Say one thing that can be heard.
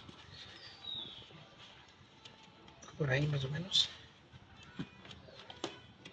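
Stiff plastic creaks and clicks as hands bend and handle it.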